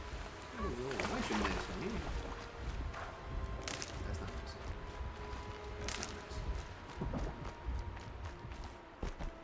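Footsteps rustle through dense leafy plants.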